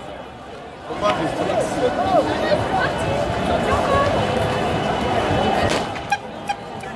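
A large crowd of football supporters chants and shouts outdoors.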